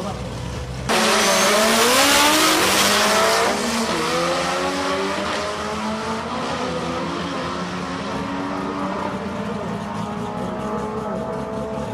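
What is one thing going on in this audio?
A car engine roars as the car speeds away into the distance.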